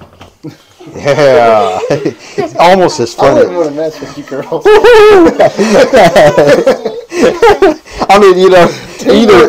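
Girls laugh and chatter excitedly.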